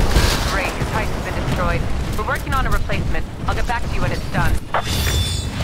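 A woman speaks over a radio.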